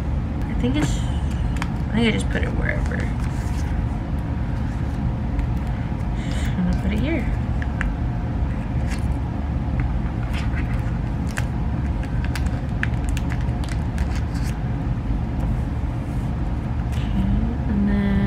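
Plastic sleeves crinkle and rustle as cards are slid in and out.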